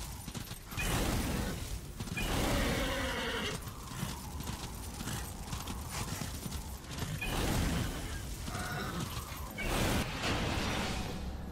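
Fiery bursts whoosh and roar in a game.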